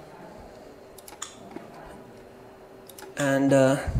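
A computer mouse clicks a few times.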